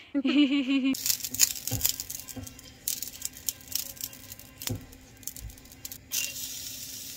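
A brush scrapes and taps against a hot pan.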